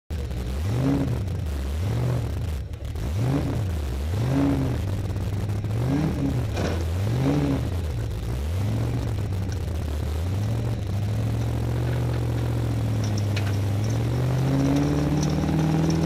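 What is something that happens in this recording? A car engine revs up and down repeatedly, then hums steadily and slowly rises as the car drives off.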